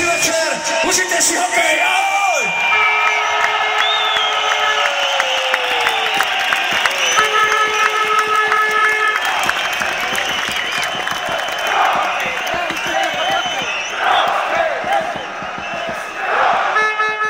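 A large crowd cheers and shouts in an open-air arena.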